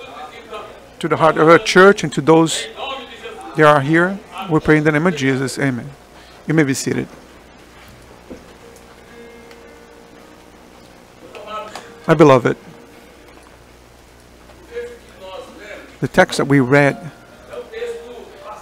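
An elderly man speaks with emphasis, pausing between phrases.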